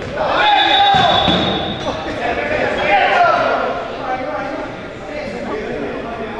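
Players shout to each other across an echoing indoor hall.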